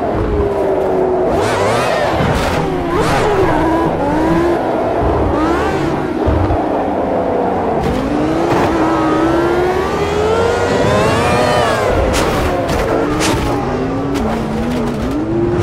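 A racing car engine whines loudly, its pitch rising and falling as it shifts gears.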